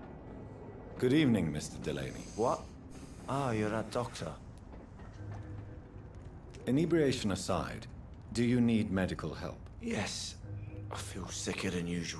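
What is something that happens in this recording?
A middle-aged man speaks in a surprised, gruff voice close by.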